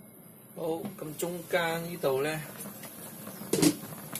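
A glass lid clinks as it is lifted off a metal wok.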